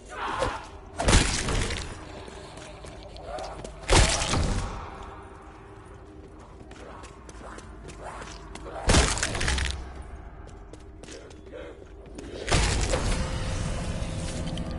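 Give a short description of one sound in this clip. Loud energy blasts whoosh and roar in short bursts.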